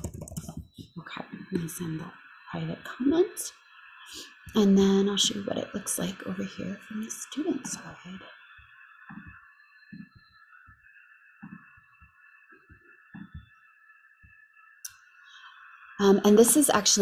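A young woman talks calmly through a computer microphone.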